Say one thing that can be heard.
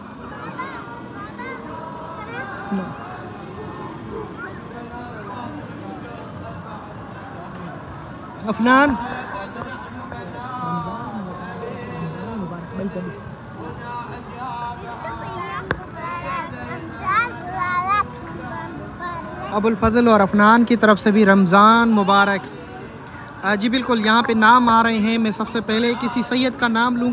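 A crowd murmurs and chatters.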